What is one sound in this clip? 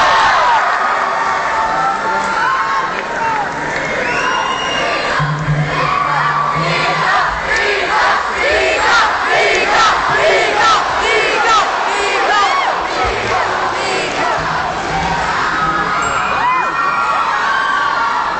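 A crowd cheers and whistles nearby.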